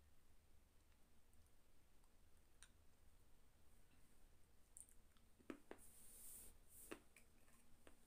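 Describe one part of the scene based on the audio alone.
A woman eats, with soft crunching and mouth sounds.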